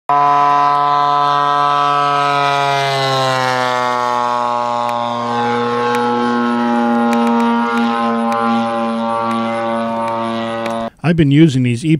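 A model airplane engine buzzes loudly as the plane flies past, its pitch dropping.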